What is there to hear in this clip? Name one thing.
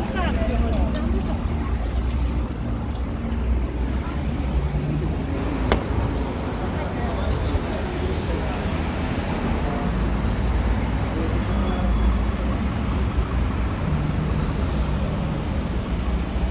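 A bus drives past with a low engine hum.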